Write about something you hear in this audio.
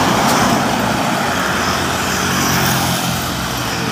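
A heavy truck's diesel engine rumbles as it passes close by.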